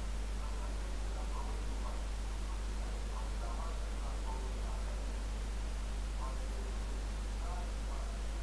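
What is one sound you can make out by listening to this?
A middle-aged man speaks quietly through a webcam microphone.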